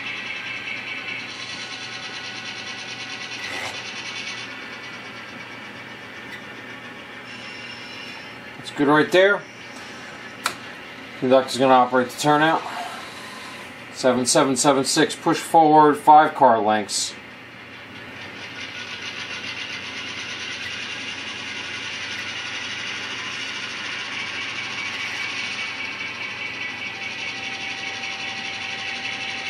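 An N-scale model train's electric motor whines as it rolls along the track.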